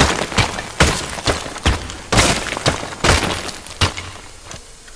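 A heavy gun fires loud single shots that ring out with an echo.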